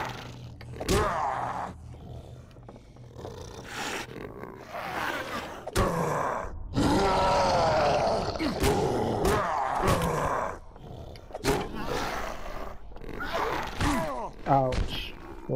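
A blade strikes flesh with sharp thwacks.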